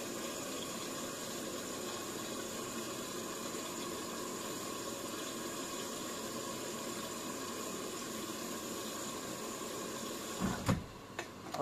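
A washing machine hums steadily.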